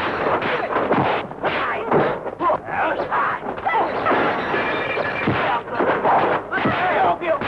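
Fists land on bodies with sharp, heavy thuds.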